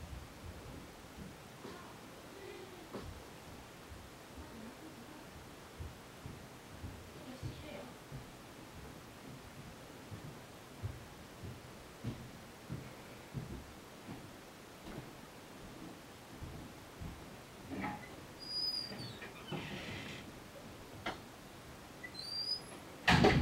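A cat rolls over on soft bedding with a faint rustle.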